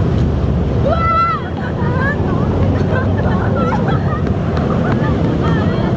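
Young women laugh and chatter outdoors.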